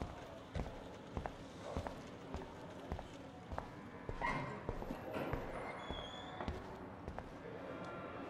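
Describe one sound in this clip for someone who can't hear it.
Footsteps tread steadily across a hard floor.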